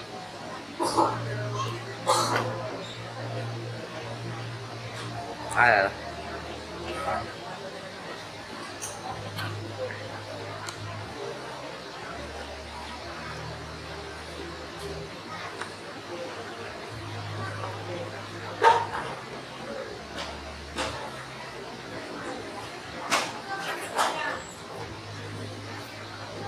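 A crowd of men murmurs in the background.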